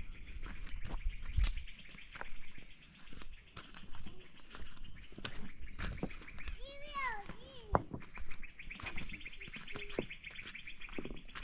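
Footsteps crunch and scuff over loose stones.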